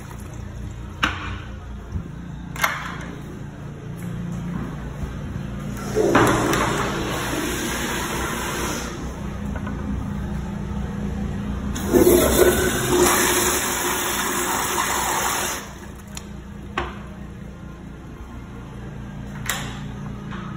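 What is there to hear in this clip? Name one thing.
A metal stall door latch clicks.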